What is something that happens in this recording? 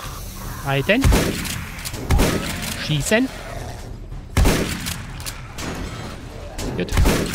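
A shotgun fires loud single blasts.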